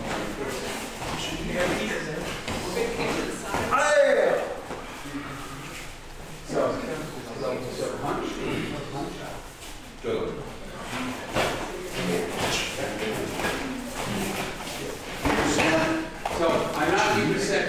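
Several people talk and call out in an echoing room.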